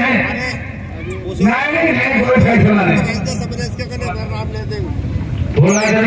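A man announces loudly and with animation through a loudspeaker outdoors.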